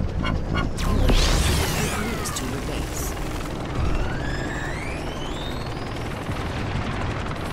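Energy weapons fire with sweeping, whooshing zaps.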